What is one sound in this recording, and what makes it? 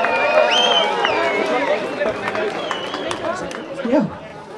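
A brass band plays a lively tune outdoors.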